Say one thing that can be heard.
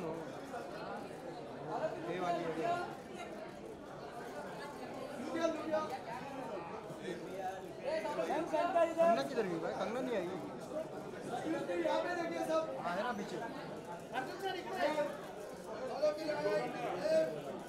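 A crowd of men and women talk and call out nearby.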